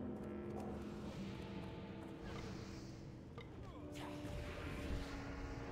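A fiery spell bursts and whooshes.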